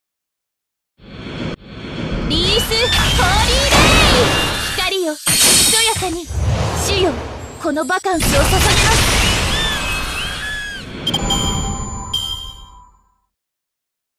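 Fighting sound effects whoosh and crash in quick bursts.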